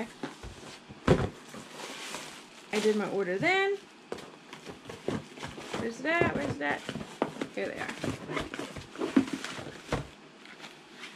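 Plastic packaging rustles and crinkles.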